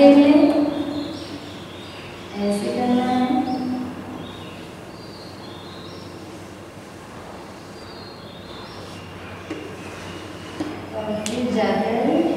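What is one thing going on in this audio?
Chalk scrapes and taps on a blackboard.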